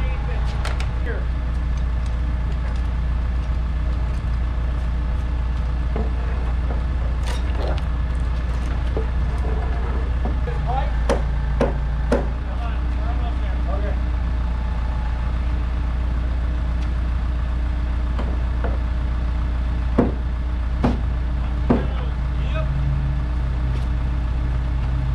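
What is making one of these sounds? A crane engine hums steadily.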